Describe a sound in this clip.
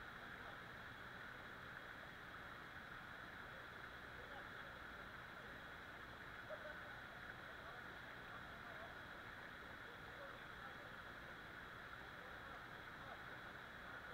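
A waterfall splashes steadily into a pool, heard outdoors.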